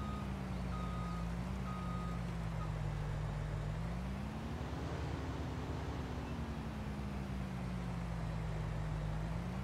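A large harvester engine hums steadily, rising in pitch and then settling again.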